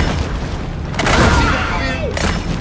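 An explosion bursts with a loud blast.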